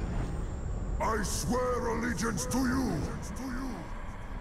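A deep-voiced man speaks gruffly with a growl.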